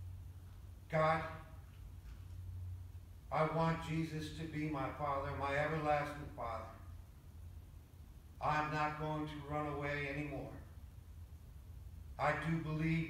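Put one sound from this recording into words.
An elderly man speaks slowly and calmly into a microphone, heard through loudspeakers in an echoing hall.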